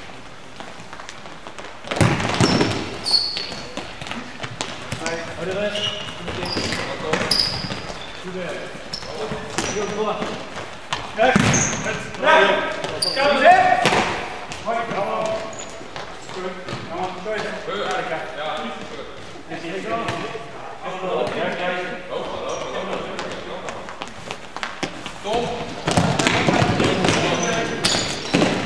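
Players' shoes squeak sharply on a hard indoor floor in an echoing hall.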